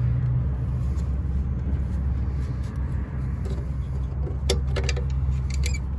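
A plastic bulb socket clicks as it is twisted loose.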